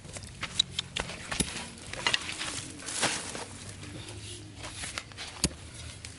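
A metal blade stabs into sandy soil with dull thuds.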